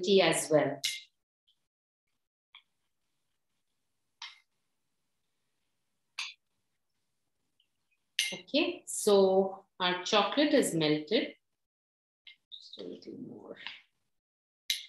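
A woman speaks calmly over an online call, in bursts with pauses.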